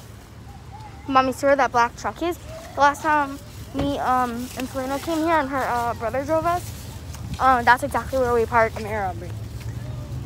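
A young girl talks close by, muffled, with animation.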